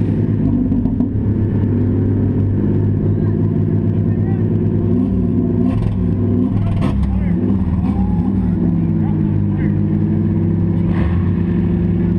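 Car bodies bang and crunch against each other.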